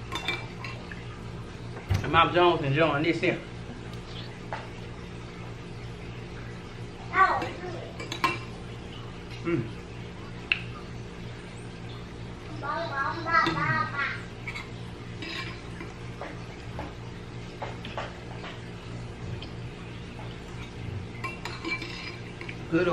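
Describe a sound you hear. A spoon clinks and scrapes against a bowl.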